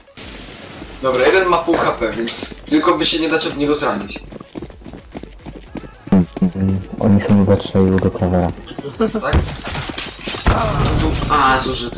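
Footsteps run on stone pavement.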